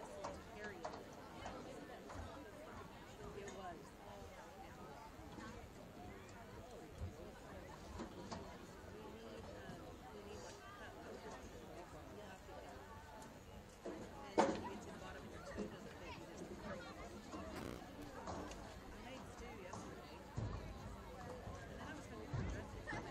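A crowd murmurs and chatters outdoors at a distance.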